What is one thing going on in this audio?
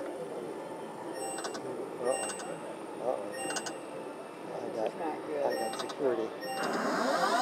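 A slot machine chimes and jingles as its reels spin.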